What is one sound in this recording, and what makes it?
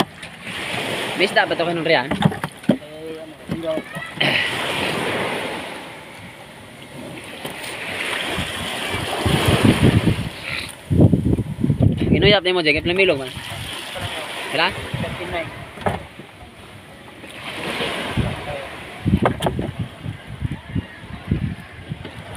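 Fish thump and slap as they are dropped into a plastic tub.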